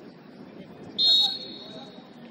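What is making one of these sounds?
A referee's whistle blows once, sharp and short.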